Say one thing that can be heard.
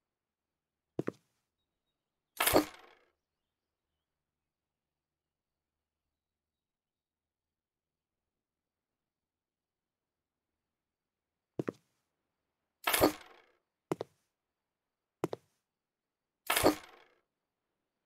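A short, soft whoosh plays a few times as furniture is placed.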